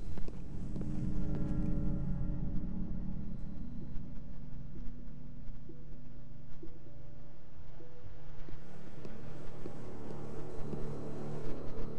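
Footsteps pad softly on a tiled floor.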